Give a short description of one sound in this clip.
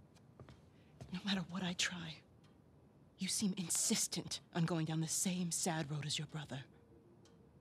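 A woman speaks calmly and firmly.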